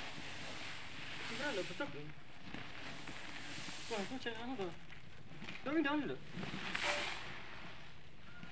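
A plastic tarp rustles and crinkles as it is pulled.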